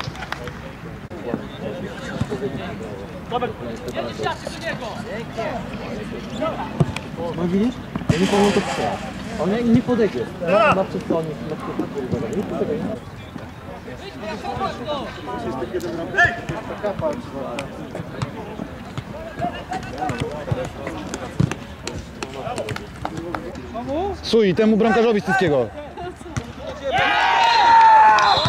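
Men shout and call out to each other outdoors during a football game.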